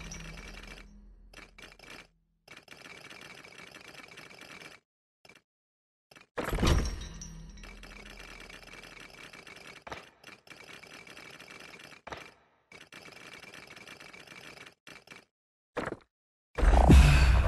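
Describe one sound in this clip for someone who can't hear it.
Soft menu clicks tick again and again.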